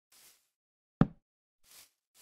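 A wooden block thuds into place.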